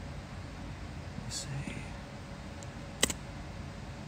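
A young man speaks briefly and quietly close by.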